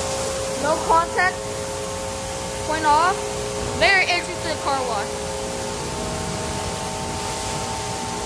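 Water sprays and splashes onto a car.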